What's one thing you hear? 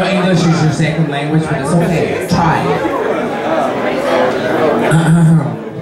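A woman speaks with animation into a microphone, heard over loudspeakers.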